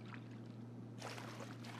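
A mop sloshes in a bucket of water.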